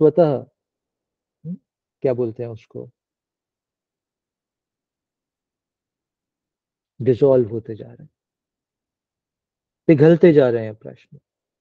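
A man speaks calmly in short phrases, heard through an online call.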